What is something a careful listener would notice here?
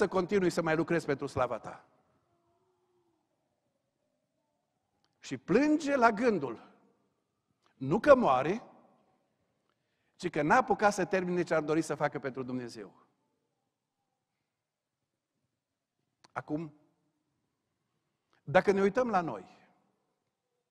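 A middle-aged man preaches with emphasis through a microphone, in short bursts with long pauses.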